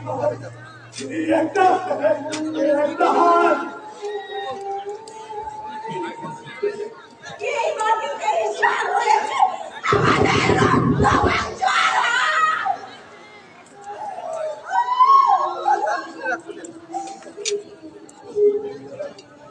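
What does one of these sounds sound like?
Men speak and call out loudly, heard from a distance in an open space.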